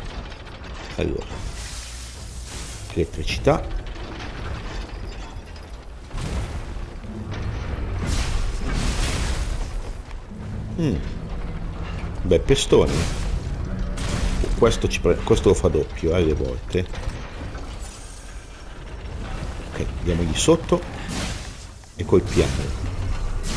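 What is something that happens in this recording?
Metal blades clash and clang against a giant machine.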